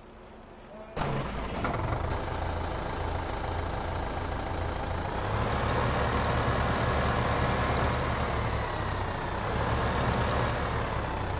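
A tractor engine chugs steadily.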